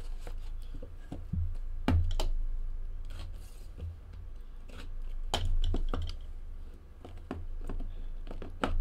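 Cardboard boxes tap and scrape as they are handled.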